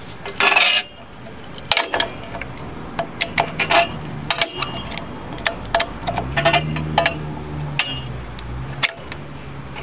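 Metal parts click and clink against each other.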